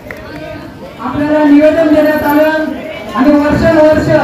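A man speaks with animation into a microphone, heard through loudspeakers.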